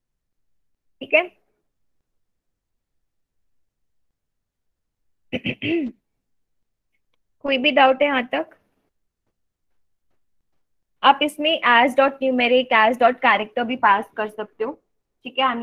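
A young woman speaks calmly into a microphone, in short bursts with pauses.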